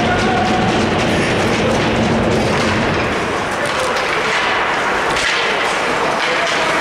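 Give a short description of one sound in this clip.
Noise echoes through a large hall.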